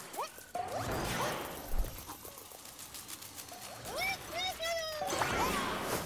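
A cartoon character's feet patter quickly as it runs.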